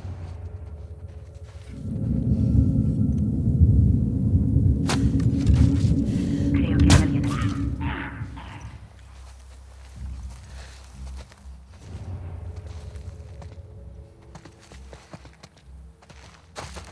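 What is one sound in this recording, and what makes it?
Tall grass rustles softly as someone creeps through it.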